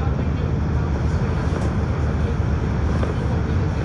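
A car passes by in the other direction.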